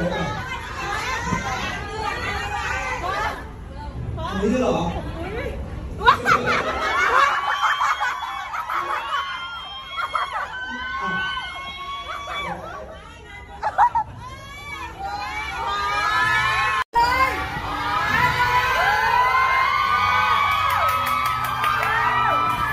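A crowd of young women screams and cheers with excitement.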